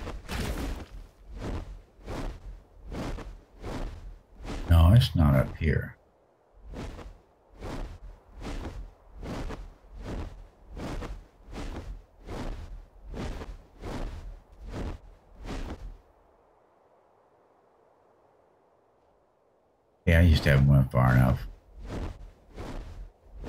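A large creature's wings beat in steady, heavy whooshing flaps.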